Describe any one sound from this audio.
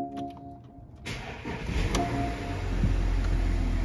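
An SUV's engine cranks and starts from cold.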